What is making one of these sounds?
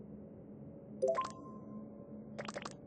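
A game menu opens with a short chime.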